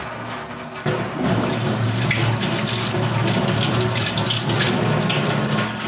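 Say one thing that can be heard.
Water runs from a tap onto hands.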